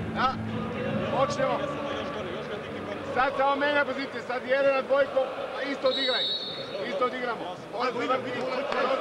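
A man speaks urgently and quickly, close by.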